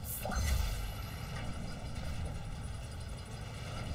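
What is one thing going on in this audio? A short bright chime rings as energy is picked up.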